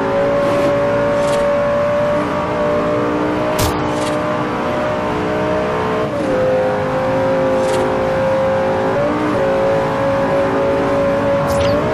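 A sports car engine drones loudly at high revs, its pitch dipping briefly now and then as it changes gear.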